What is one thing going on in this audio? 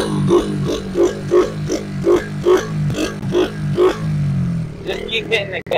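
A small motorbike engine hums and buzzes nearby.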